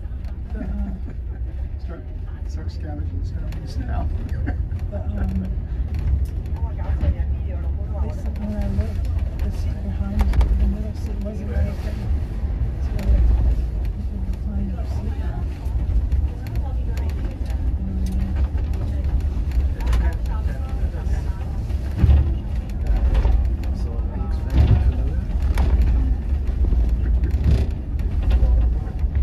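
A bus engine hums and rumbles steadily.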